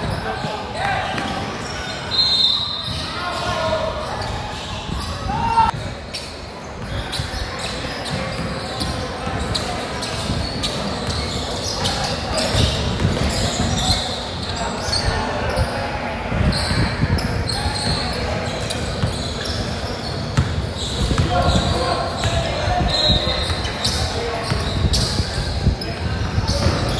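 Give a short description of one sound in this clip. Basketball shoes squeak sharply on a hard floor in an echoing hall.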